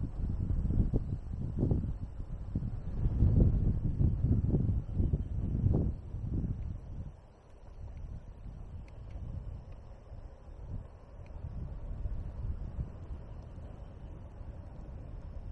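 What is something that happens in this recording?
Tyres roll along a paved path.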